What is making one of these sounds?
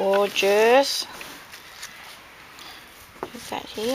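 Lace fabric rustles softly as hands handle it.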